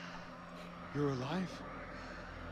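A man asks a short question in a low voice.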